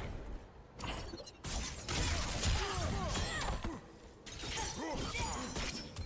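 Ice crackles and shatters.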